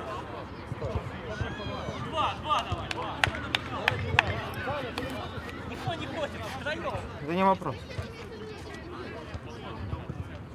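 Men shout and call out to each other outdoors across a playing field.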